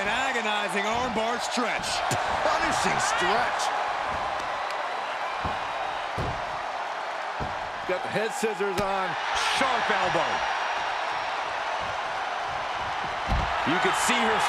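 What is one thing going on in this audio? Bodies thud onto a wrestling mat.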